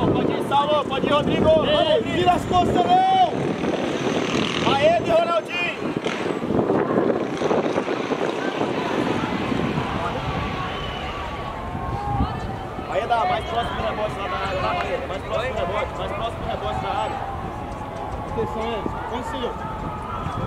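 Young players shout to each other across an open outdoor pitch.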